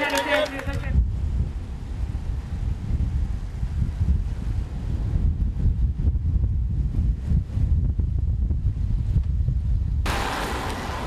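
Road racing bicycles roll along a paved road.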